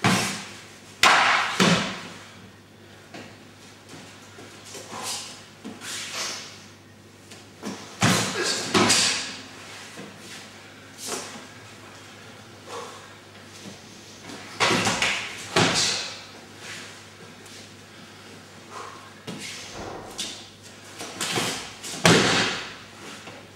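Bodies thump onto a mat as a man is thrown and rolls.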